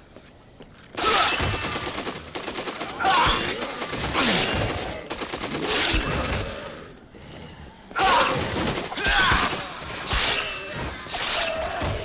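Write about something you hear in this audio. A crowd of zombies groans and snarls.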